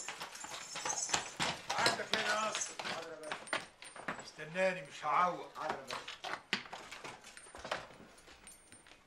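Horse hooves clop on a hard street.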